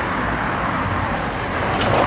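A car drives past on a cobbled street.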